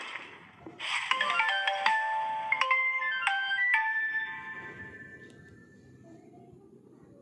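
A game's cheerful jingle chimes.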